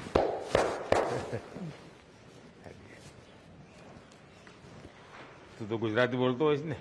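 An elderly man speaks warmly up close.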